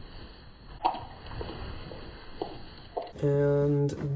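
A dog laps and chews food from a bowl.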